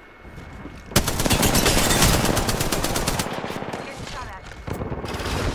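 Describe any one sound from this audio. An automatic rifle fires rapid, loud bursts.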